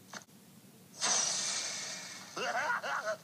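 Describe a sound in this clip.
A soft puff of air whooshes out.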